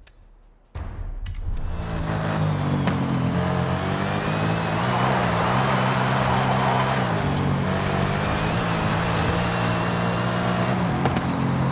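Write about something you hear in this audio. A powerful car engine roars loudly, shifting gears as it speeds up.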